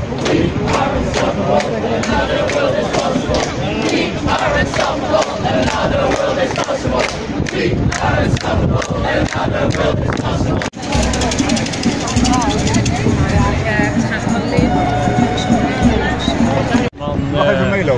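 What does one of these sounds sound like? A crowd of protesters chants and shouts outdoors.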